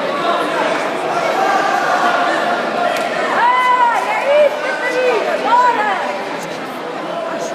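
Many spectators chatter in a large echoing hall.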